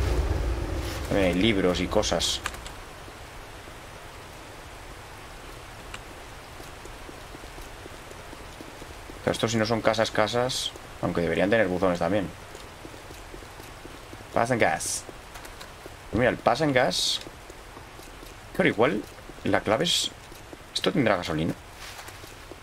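A young man speaks calmly and closely into a microphone, in short bursts.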